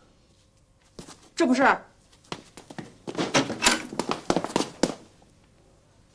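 A middle-aged woman speaks loudly.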